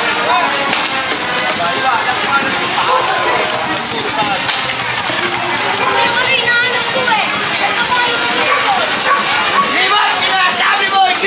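A crowd of men and women talk and call out outdoors.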